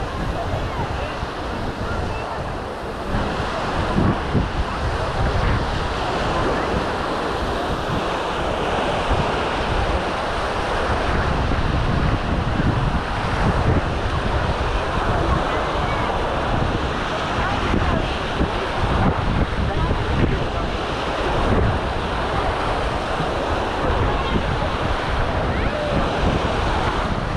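Many people chatter and call out in the distance outdoors.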